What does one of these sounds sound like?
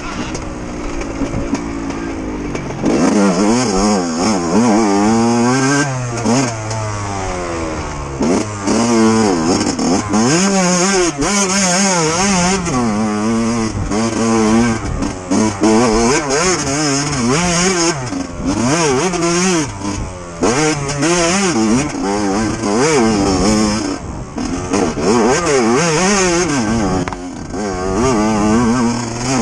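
Knobby tyres crunch over dry leaves and dirt.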